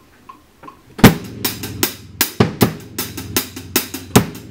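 A drum kit is played hard, with sharp hits and crashing cymbals.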